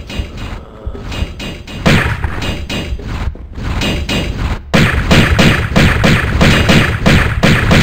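Footsteps thud quickly on rock.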